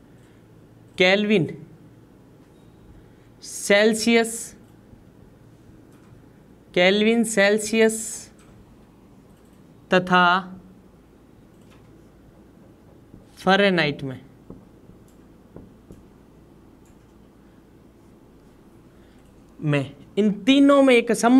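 A man speaks slowly in short phrases, close by, with long pauses.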